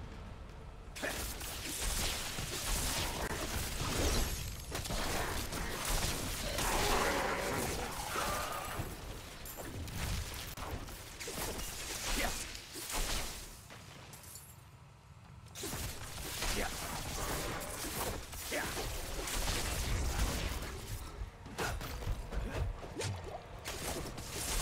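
Magic spells crackle and burst during a fight.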